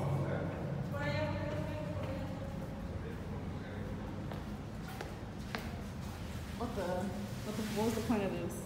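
Footsteps echo in a hard, enclosed passage.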